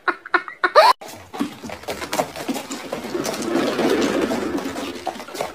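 A hamster runs in a rattling plastic wheel.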